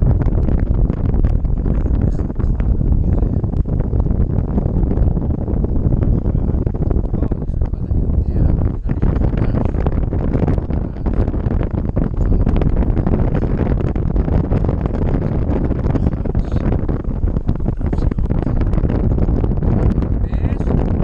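Strong wind roars and buffets against a microphone throughout.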